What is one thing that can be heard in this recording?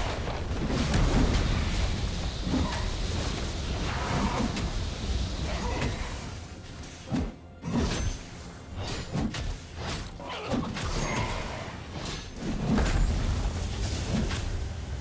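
Magic spells whoosh and burst in a game battle.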